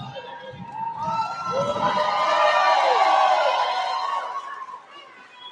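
An audience cheers and whoops loudly in a large echoing hall.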